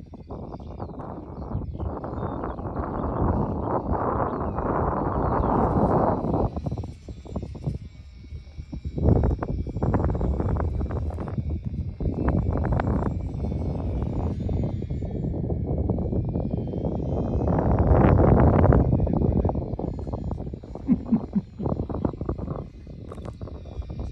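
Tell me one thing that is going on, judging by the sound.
A small propeller plane drones overhead.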